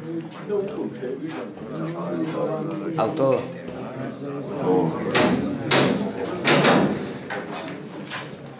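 A crowd of men murmur and talk over one another nearby.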